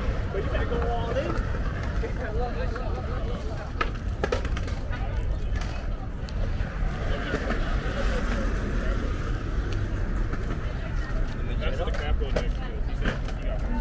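Skateboard wheels roll and clack on pavement.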